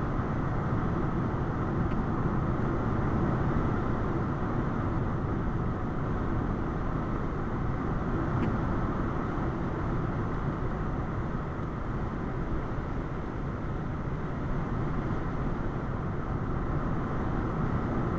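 Tyres roar steadily on a paved road.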